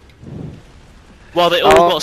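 An energy weapon fires with a loud crackling blast.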